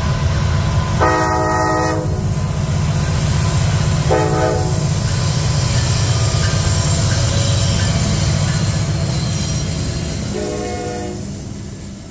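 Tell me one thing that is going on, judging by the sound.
A train horn blows in short loud blasts.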